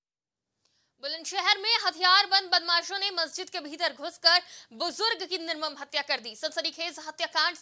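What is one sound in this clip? A young woman reads out the news calmly through a microphone.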